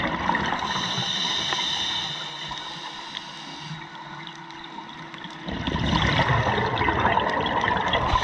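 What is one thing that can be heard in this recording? Water rushes and crackles, heard muffled underwater.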